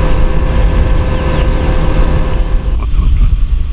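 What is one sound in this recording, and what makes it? An electric locomotive hums loudly close by.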